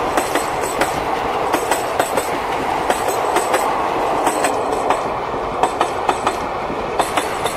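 A passenger train rumbles past nearby.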